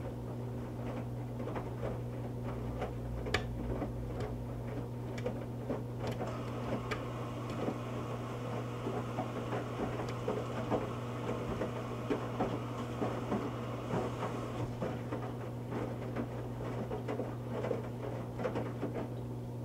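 Water and wet laundry slosh and splash inside a washing machine drum.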